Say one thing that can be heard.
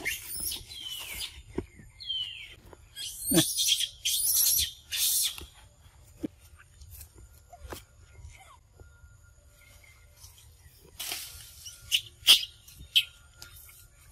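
A baby monkey squeals and shrieks shrilly, close by, in bursts.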